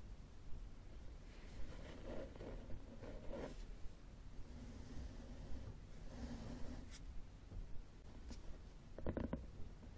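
Fingernails tap and scratch on a hard book cover close up.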